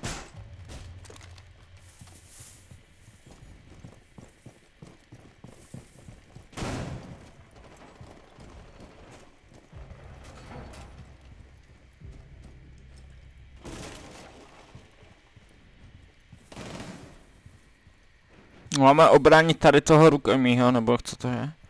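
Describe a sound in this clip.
Footsteps thud softly on a floor.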